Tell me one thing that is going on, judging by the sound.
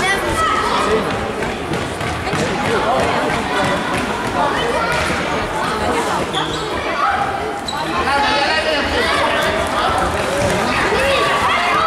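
A ball thuds on a hard floor.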